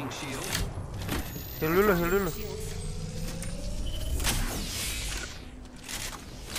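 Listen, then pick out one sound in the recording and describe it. A shield battery charges with a rising electronic whir.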